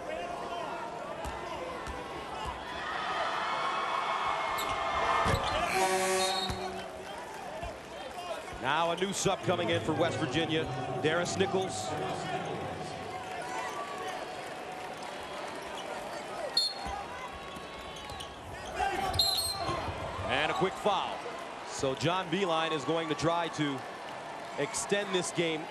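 A large crowd murmurs in a big echoing arena.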